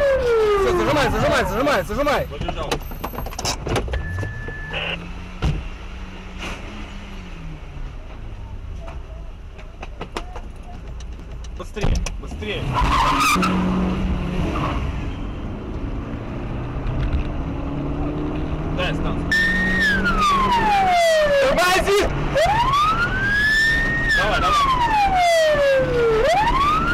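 A car engine hums while driving.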